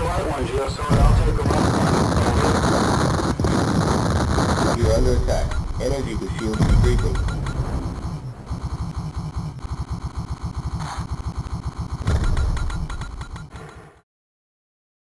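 Explosions boom in a space shooting game.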